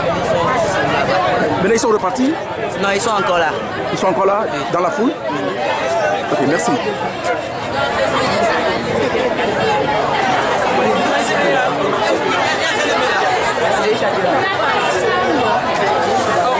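A large crowd of young people chatters and shouts outdoors.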